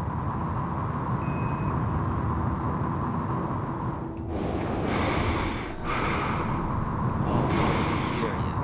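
A deep, steady rumble hums throughout.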